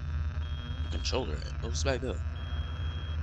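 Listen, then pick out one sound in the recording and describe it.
A young man speaks briefly into a headset microphone.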